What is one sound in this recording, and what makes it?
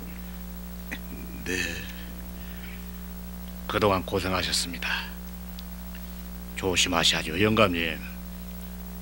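An older man speaks in a gruff, low voice, close by.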